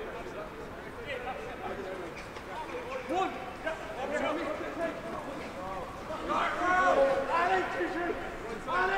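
Men shout calls to each other outdoors on an open field.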